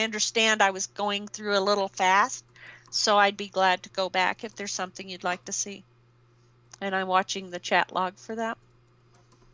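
A woman speaks calmly through a microphone, then falls silent.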